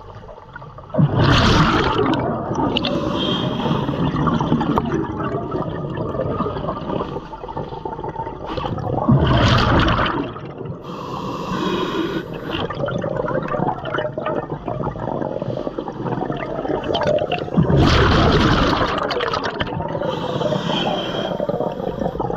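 Bubbles from a diver's breathing gush and gurgle loudly close by, again and again.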